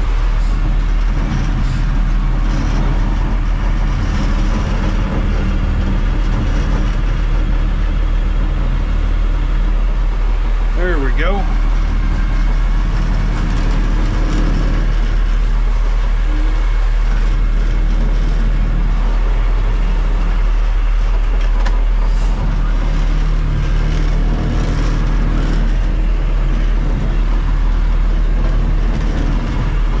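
A truck's diesel engine rumbles loudly and steadily from inside the cab.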